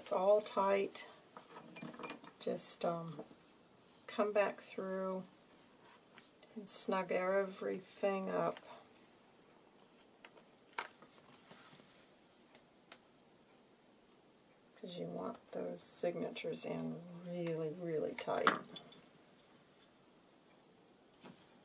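Paper rustles as pages of a book are handled and flipped.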